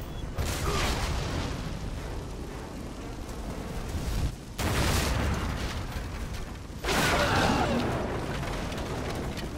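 Explosions boom and crackle with debris.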